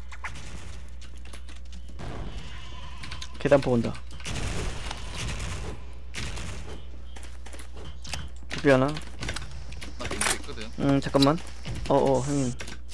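Sharp metallic clicks sound as weapons are switched and handled.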